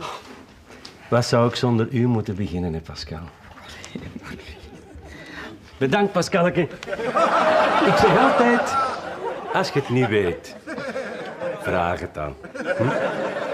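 An elderly man talks and chuckles close by.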